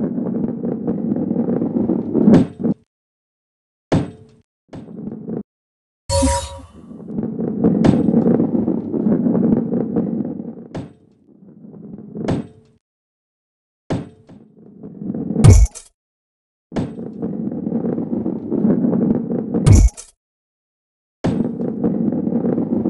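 A ball rolls along a smooth track with a steady low rumble, cutting out now and then.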